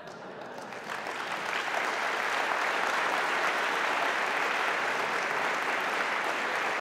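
An audience applauds in a large hall, swelling and then holding steady.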